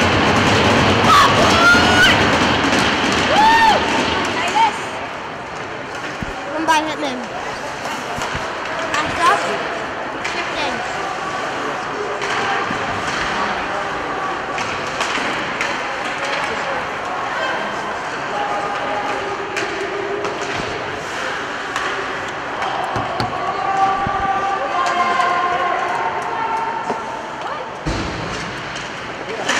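Spectators cheer and shout in a large echoing rink.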